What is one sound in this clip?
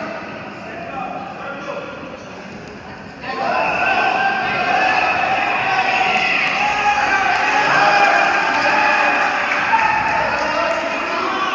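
Wrestlers thud and scuffle on a mat.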